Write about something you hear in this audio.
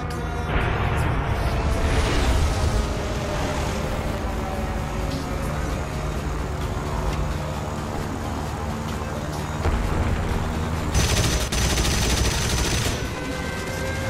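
Explosions boom on the ground.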